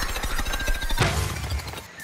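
An explosion bursts with a soft puff.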